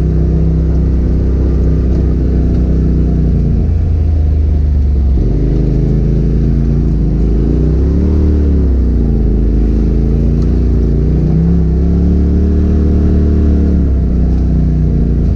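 An off-road vehicle's engine hums loudly and revs up and down.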